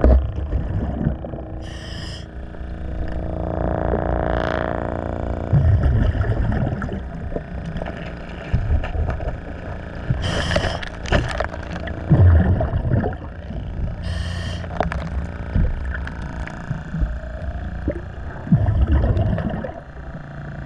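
Air bubbles gurgle and rush underwater, heard muffled.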